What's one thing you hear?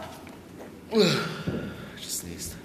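A young man exclaims loudly close by.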